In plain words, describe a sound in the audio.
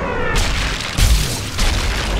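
A bullet strikes a body with a heavy thud.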